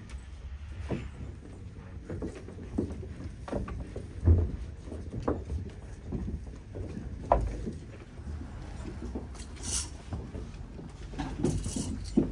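Footsteps shuffle on a wooden floor.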